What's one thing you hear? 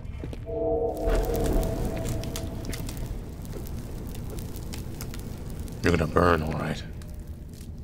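Flames roar and crackle as dry vines burn.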